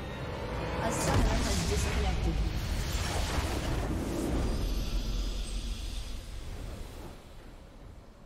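A deep explosion booms and crackles, then rumbles away.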